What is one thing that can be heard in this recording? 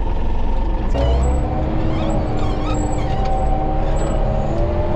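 A diesel engine revs up and holds a higher, whining pitch.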